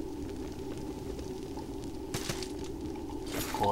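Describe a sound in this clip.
Footsteps tap on stone steps.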